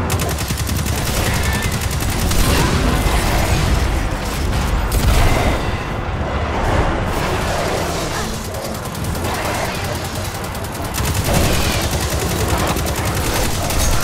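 An automatic rifle fires rapid shots.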